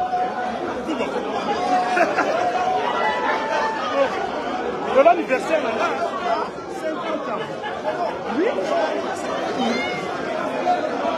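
A dense crowd of men and women talks and shouts excitedly close by, indoors.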